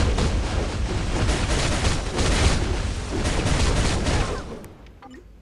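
Loud battle effects and blasts crash in a game.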